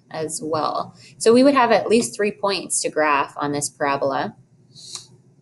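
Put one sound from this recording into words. A young woman speaks calmly and clearly into a close microphone.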